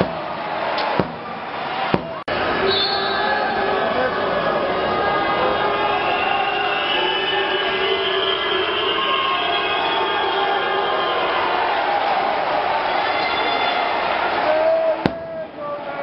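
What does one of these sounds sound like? A crowd chants and sings loudly in a large echoing hall.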